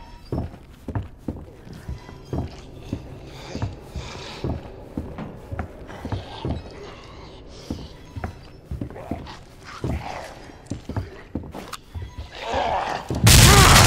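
Heavy footsteps thud steadily on a wooden floor.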